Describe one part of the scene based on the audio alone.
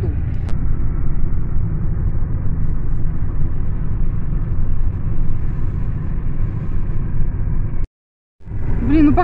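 A car rumbles low and steadily along a road, heard from inside.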